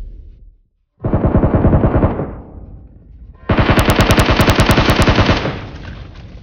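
A gun fires in rapid bursts close by.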